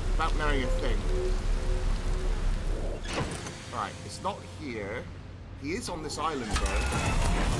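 A man talks with animation through a close microphone.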